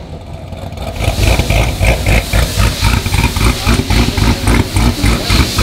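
A car engine idles with a deep, pulsing burble.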